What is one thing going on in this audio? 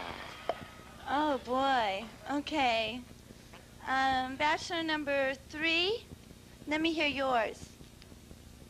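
A young woman speaks into a microphone with a light laugh.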